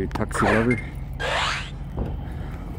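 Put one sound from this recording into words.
A short electronic whoosh plays as a game ball is thrown.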